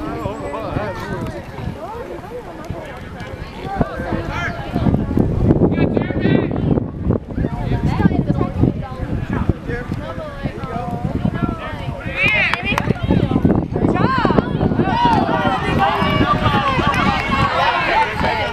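Teenage boys shout and call out to each other across an open field.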